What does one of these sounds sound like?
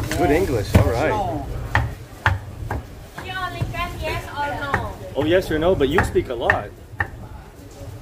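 A knife chops on a wooden board in quick knocks.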